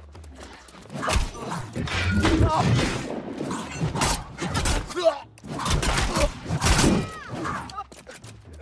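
Weapon blows strike loudly in a fight.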